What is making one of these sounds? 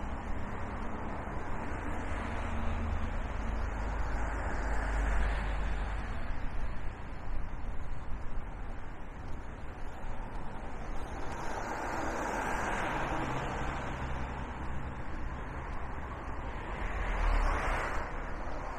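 Cars pass by on the road with a steady hum of tyres.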